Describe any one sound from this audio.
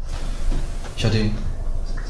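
A young man speaks sharply nearby.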